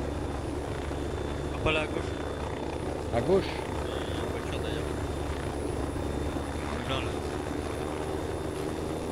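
A helicopter's rotor thuds steadily.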